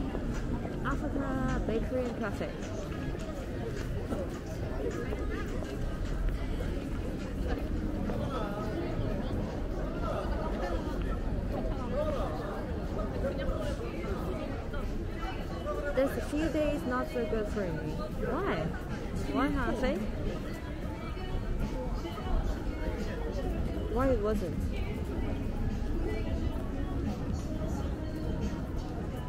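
Voices of passers-by chatter in a busy street outdoors.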